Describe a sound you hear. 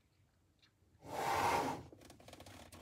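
A heavy box slides and thuds onto a desk.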